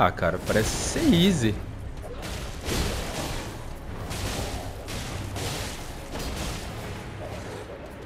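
A blade strikes a beast with heavy thuds.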